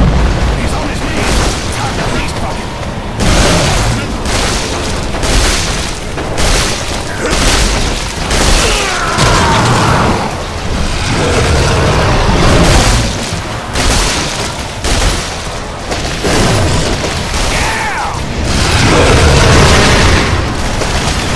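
A huge monster growls and roars.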